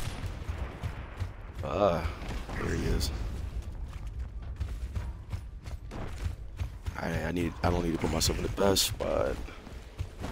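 Heavy footsteps thud and clank on hard ground.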